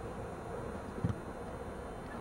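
A soccer ball is kicked with a dull thump.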